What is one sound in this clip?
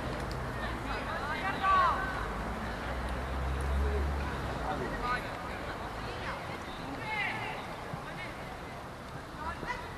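Young players shout and call out to each other across an open outdoor field.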